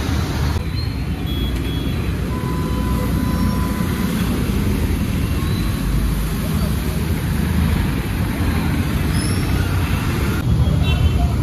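Water splashes and churns around passing wheels.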